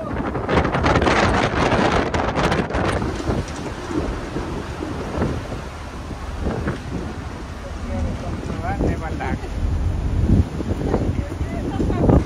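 Churning water rushes loudly behind a ship.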